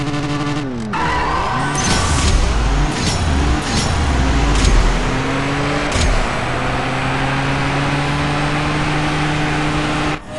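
A car engine roars as the car speeds off, rising through gear shifts.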